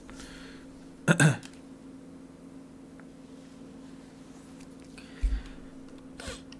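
A young man speaks briefly and quietly into a close microphone.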